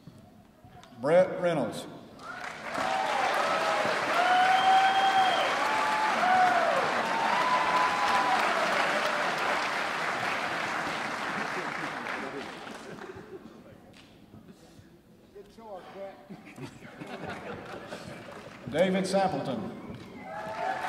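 An older man announces through a microphone and loudspeaker in a large hall.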